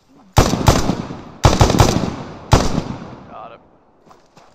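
Gunshots fire in short loud bursts, echoing outdoors.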